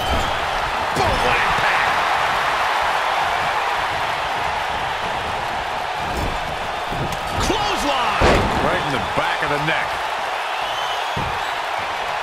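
Heavy bodies slam onto a ring mat with loud thuds.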